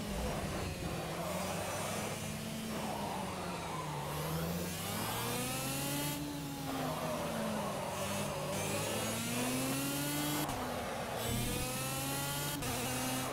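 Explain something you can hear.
A kart engine buzzes loudly, its pitch rising and falling as it speeds up and slows for corners.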